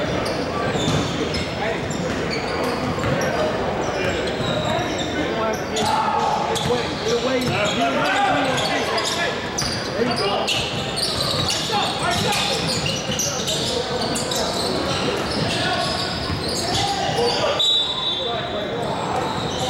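Players and spectators shout and talk in an echoing gym.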